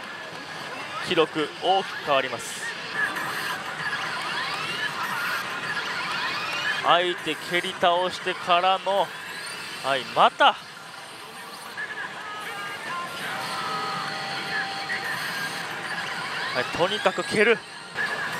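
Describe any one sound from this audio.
A slot machine plays electronic music and jingles.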